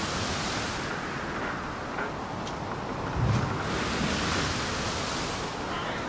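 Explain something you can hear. Waves break and wash gently in the distance.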